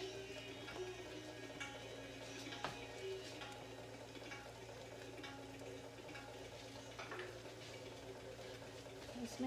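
Vegetables sizzle and pop in a covered pan.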